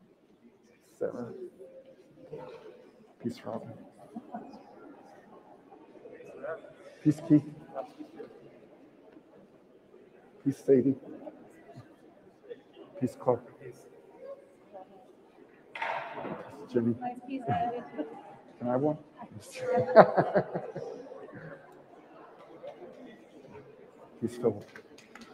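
A group of men and women chat and murmur nearby in a large echoing hall.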